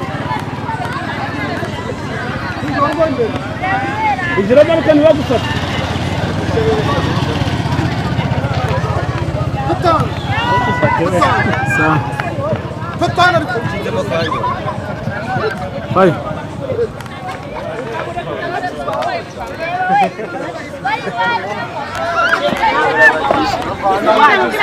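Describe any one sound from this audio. A crowd of men, women and children chatters outdoors.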